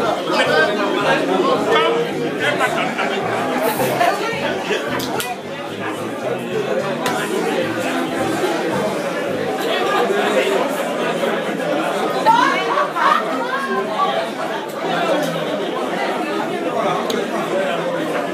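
A crowd of men and women chatter over one another.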